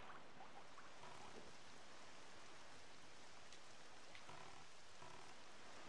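Wind and sea waves rush steadily.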